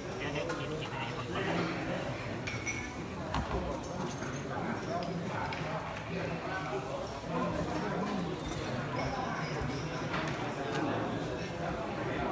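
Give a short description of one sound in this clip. Several men murmur and talk quietly nearby.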